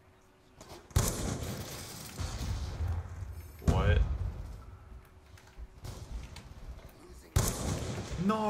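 A sniper rifle fires a loud, booming shot.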